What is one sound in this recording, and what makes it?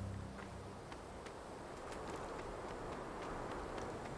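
Footsteps patter on snowy stone.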